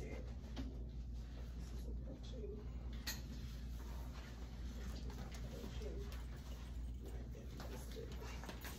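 Adults talk quietly at a distance in a room.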